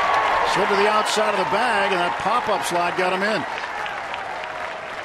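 A stadium crowd cheers and fades.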